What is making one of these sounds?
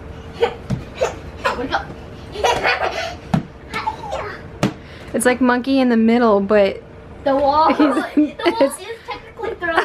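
Bare feet thump on a bouncing bed.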